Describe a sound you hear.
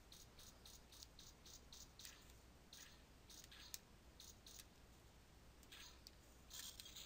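Light metallic footsteps tap in a quick, steady rhythm.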